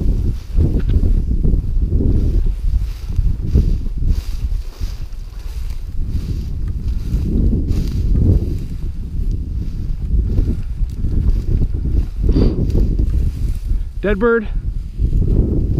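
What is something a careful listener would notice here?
Footsteps crunch and rustle through dry grass.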